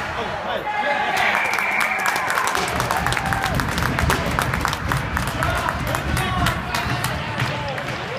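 Spectators clap after a goal.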